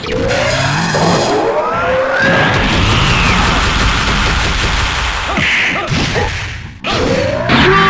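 An energy blast roars loudly.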